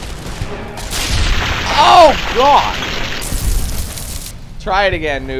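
An explosion bursts and roars.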